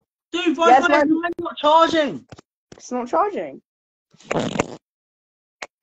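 A young person talks with animation over an online call.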